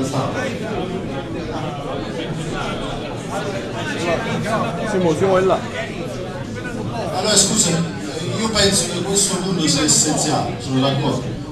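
A man speaks through a microphone and loudspeaker.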